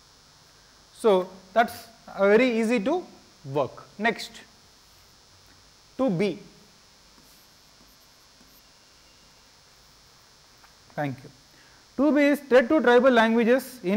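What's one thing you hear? A man speaks in a lecturing tone into a microphone, in short bursts.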